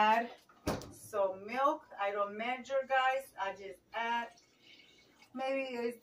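Liquid pours into a pot.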